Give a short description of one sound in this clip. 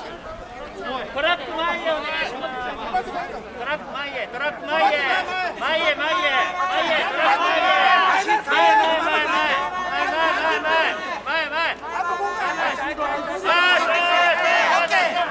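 A group of men chant loudly in rhythm, growing louder.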